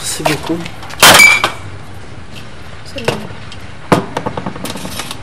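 Glass bottles are set down on a table with a knock.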